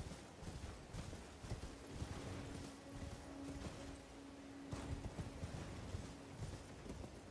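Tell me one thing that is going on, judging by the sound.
Horse hooves thud steadily on grass and rock.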